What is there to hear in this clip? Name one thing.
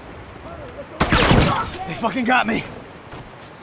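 A heavy blow strikes with a thud.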